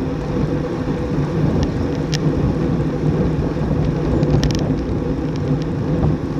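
Wind rushes steadily past the microphone.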